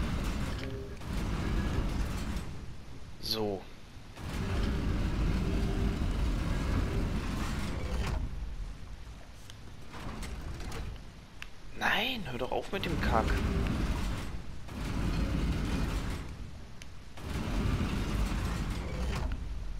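A heavy stone mechanism grinds and rumbles as a wheel is turned.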